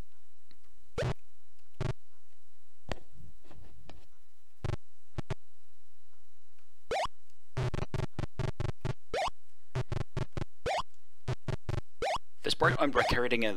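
Short electronic game blips sound in quick bursts.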